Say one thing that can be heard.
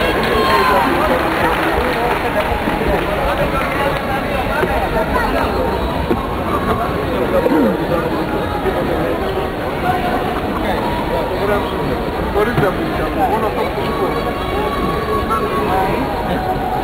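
Many people chatter with overlapping voices in a large echoing hall.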